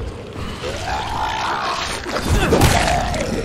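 A creature snarls and roars up close.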